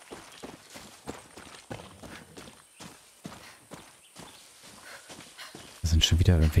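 Footsteps rustle quickly through grass and brush.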